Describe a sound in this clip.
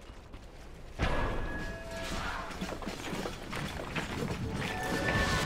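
Fantasy battle sounds of magic blasts and clashing weapons burst out.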